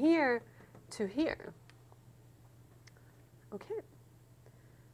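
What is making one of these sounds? A woman speaks calmly and clearly into a close microphone, in short phrases.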